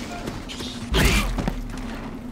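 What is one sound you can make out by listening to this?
A bow twangs as an arrow is loosed.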